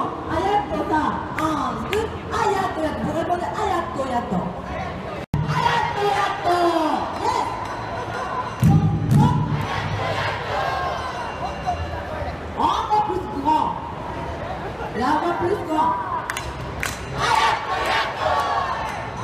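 A crowd of men and women chatters and calls out in a large echoing hall.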